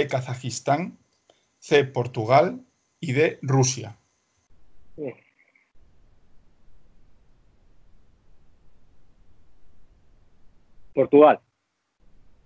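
A man talks calmly through an online call.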